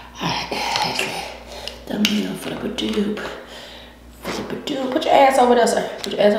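Lobster shells crack and crunch in hands.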